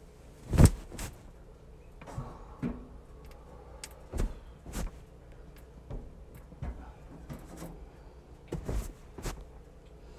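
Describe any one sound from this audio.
A middle-aged woman speaks quietly nearby.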